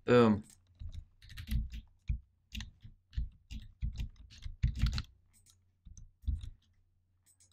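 Blocks are set down with soft, dull thuds.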